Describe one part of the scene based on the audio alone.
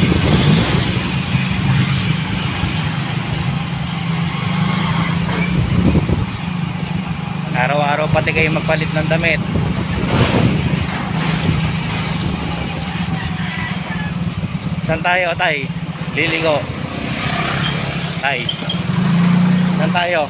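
A motorbike engine hums steadily close by.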